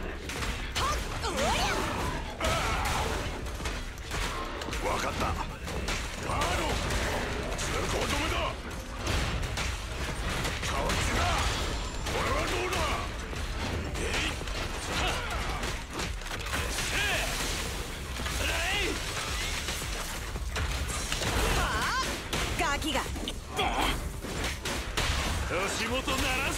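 Explosions and weapon strikes boom and crash again and again.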